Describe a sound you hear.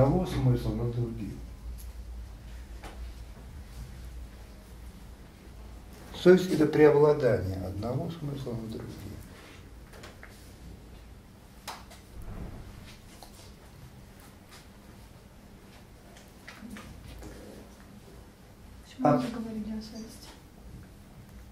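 An elderly man speaks calmly, pausing often.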